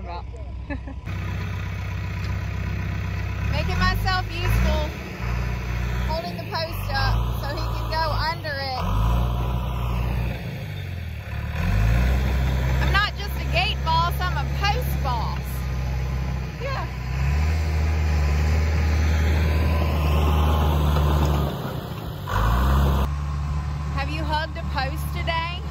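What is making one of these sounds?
A bulldozer engine rumbles steadily nearby.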